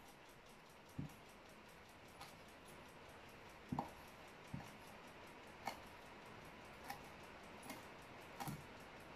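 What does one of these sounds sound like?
A knife taps on a wooden chopping board.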